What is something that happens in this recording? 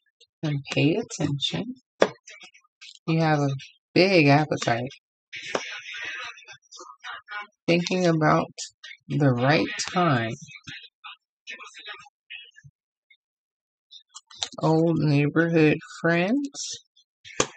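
Paper cards rustle and tap as they are handled.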